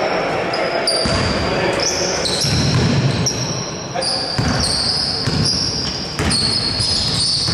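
A basketball bounces on a wooden floor with dull thuds.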